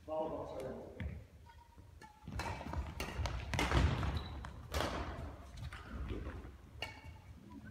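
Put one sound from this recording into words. A shuttlecock is struck with rackets in a large echoing hall.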